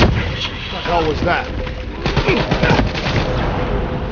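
A rifle fires several quick shots.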